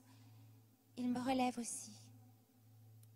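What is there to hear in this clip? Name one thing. A woman speaks softly into a microphone.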